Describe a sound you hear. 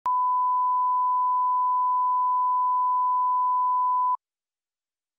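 A steady, high test tone sounds, then stops abruptly.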